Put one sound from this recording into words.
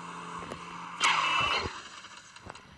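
A car crashes with a loud metallic bang.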